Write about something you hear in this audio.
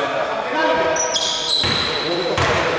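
A referee's whistle blows briefly.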